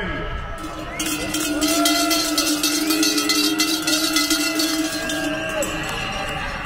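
A crowd cheers and whistles outdoors.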